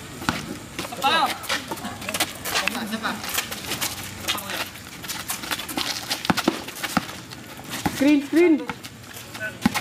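Sneakers squeak on a concrete basketball court.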